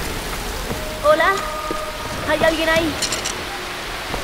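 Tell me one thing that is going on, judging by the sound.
A young woman calls out questioningly.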